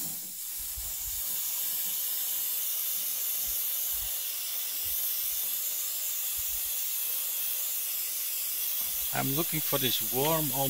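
An airbrush hisses steadily.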